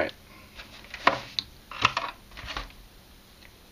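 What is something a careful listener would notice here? Hands click and knock against a hollow plastic model.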